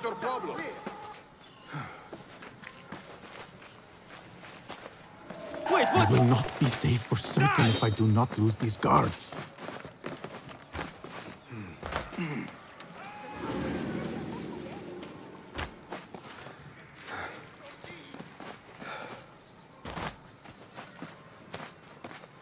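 Quick footsteps run across stone and wooden surfaces.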